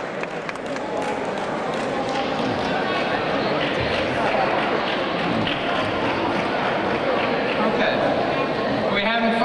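A man speaks calmly into a microphone in a large echoing hall.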